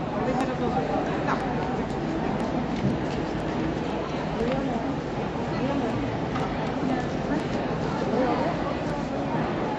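A man speaks quietly in a large echoing hall.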